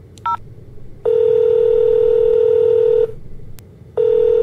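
A phone ringing tone sounds in long, steady beeps.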